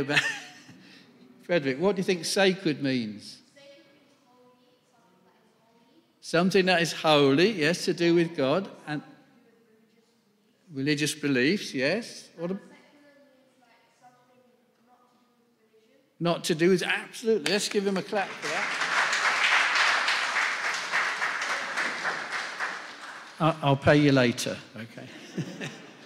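An elderly man speaks with animation through a microphone in an echoing hall.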